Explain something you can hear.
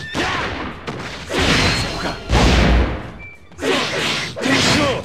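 Swords slash and clash in a noisy battle.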